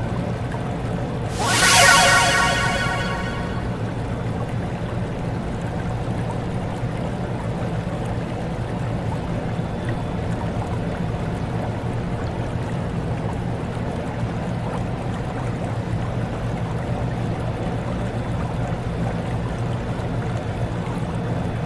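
Water splashes steadily over a turning water wheel.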